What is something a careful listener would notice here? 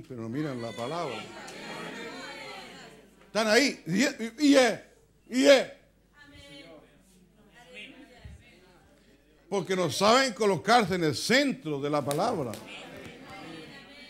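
An elderly man preaches with animation.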